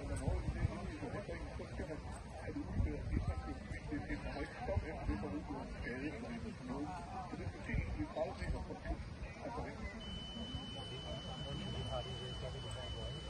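Spectators murmur and chat nearby outdoors.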